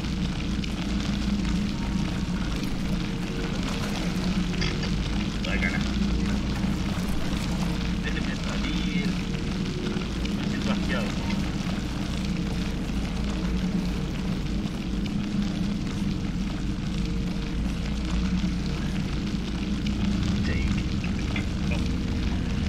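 Thick liquid gushes and splatters steadily.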